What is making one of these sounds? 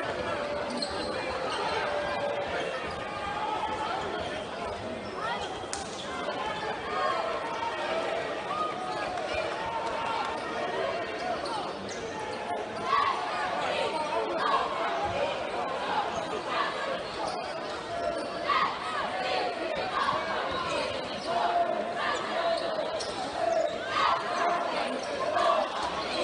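Basketball shoes squeak sharply on a hardwood floor.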